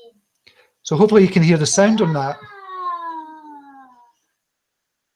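A young boy cries out loudly, close by.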